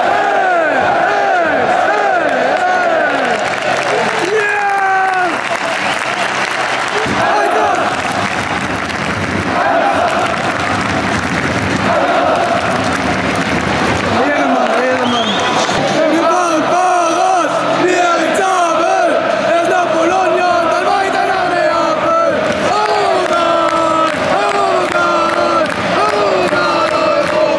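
A large crowd of fans sings and chants loudly in a big open stadium.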